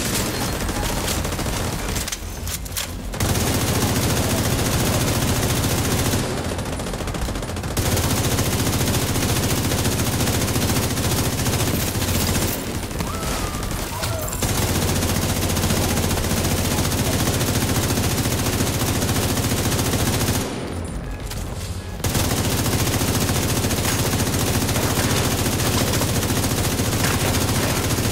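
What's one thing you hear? Guns fire in rapid bursts, echoing off hard walls.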